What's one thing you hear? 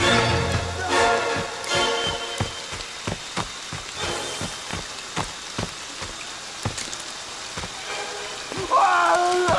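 Footsteps crunch steadily on the ground.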